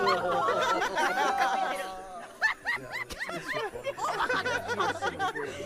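Several men and women laugh loudly together over headset microphones.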